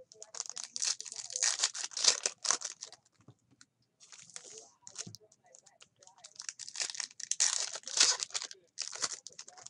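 Hands crinkle and tear open foil wrappers.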